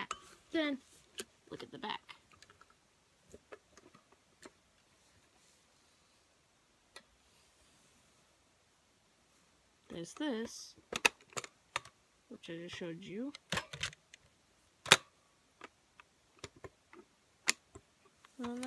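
Plastic clicks and taps as a handheld device is handled.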